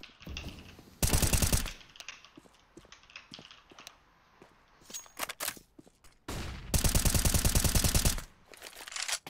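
A rifle fires in rapid, loud bursts.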